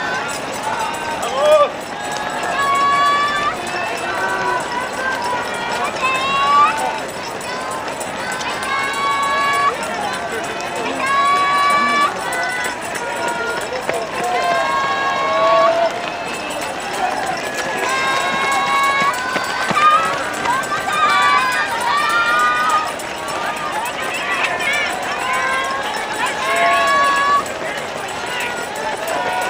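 Spectators nearby shout and cheer loudly outdoors.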